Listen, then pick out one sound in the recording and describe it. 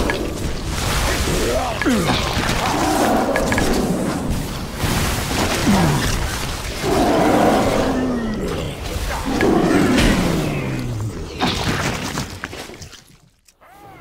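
Magic spells whoosh and crackle during a fight.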